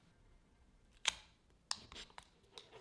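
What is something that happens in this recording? Thick glue squelches out of a tube.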